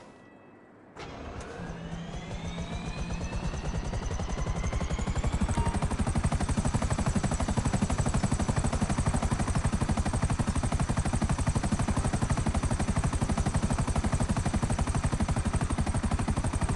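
A helicopter's rotor blades chop rapidly and loudly.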